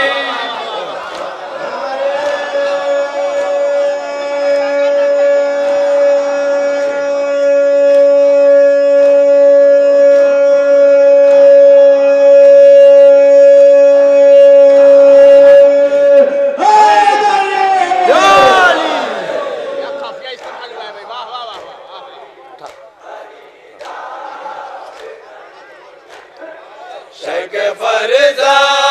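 A man chants loudly through a microphone and loudspeakers, holding long notes.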